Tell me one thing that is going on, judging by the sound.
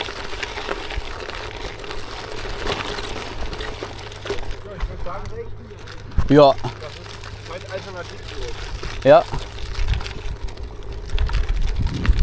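Bicycle tyres crunch over loose gravel.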